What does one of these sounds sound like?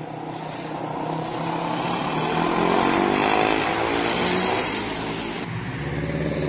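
Motorbike engines roar past nearby.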